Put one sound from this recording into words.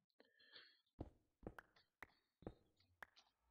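A stone block cracks and breaks apart.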